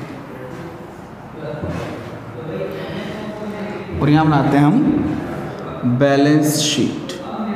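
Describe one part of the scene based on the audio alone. A man speaks calmly, as if teaching, close by.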